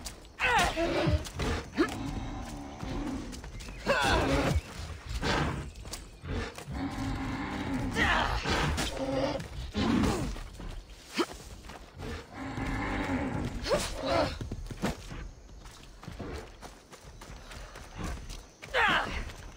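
A spear swishes and strikes.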